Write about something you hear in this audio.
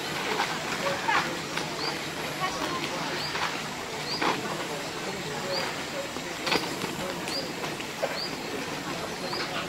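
A man talks quietly nearby outdoors.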